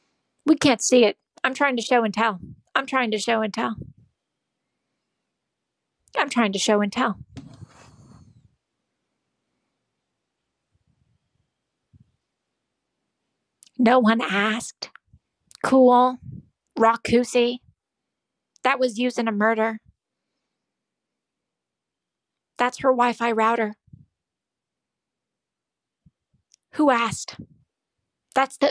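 A young woman talks with animation close to a microphone, in short bursts with pauses.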